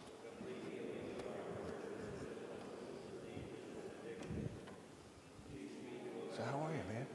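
An elderly man speaks calmly in a large echoing hall.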